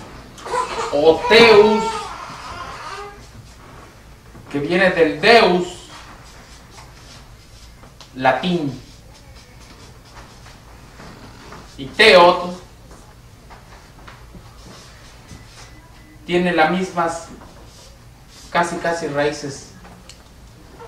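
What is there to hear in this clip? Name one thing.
A man speaks in short, clear phrases to a small audience.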